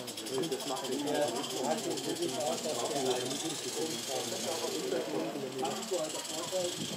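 A model train rumbles along its track outdoors.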